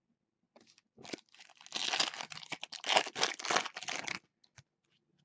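A foil wrapper crinkles and tears as hands rip it open.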